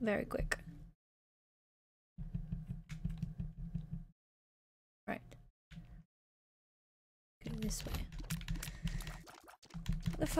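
A young woman talks with animation close to a microphone.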